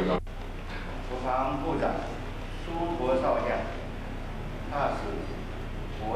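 A man reads aloud through a microphone.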